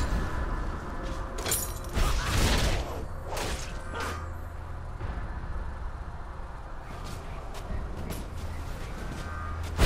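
Interface clicks sound as items are chosen.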